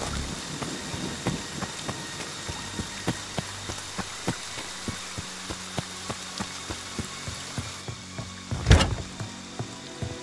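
Footsteps run quickly over leaves and soft ground.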